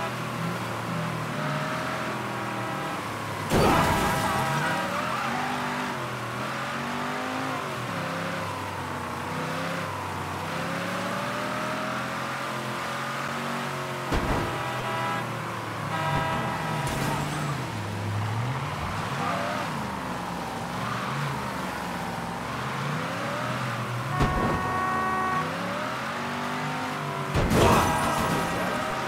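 A car engine roars and revs up and down as a car speeds along.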